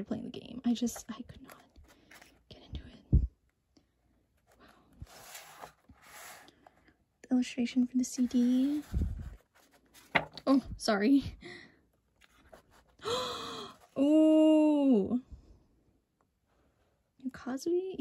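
A stiff book page rustles as it is turned.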